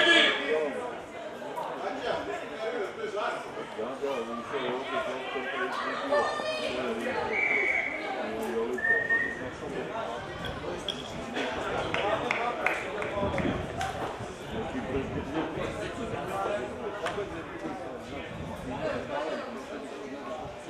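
Men shout and call out to each other outdoors across a sports field.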